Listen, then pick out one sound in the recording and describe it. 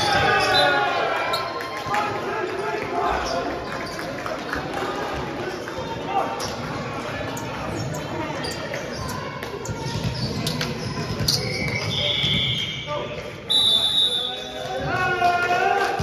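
Players and onlookers talk and shout in a large echoing hall.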